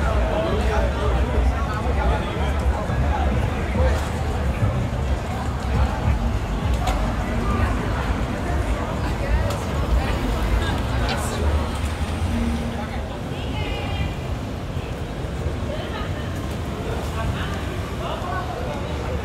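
Traffic rumbles steadily along a busy city street.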